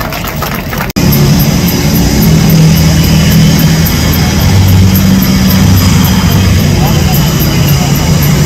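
Jet engines drone steadily at a distance.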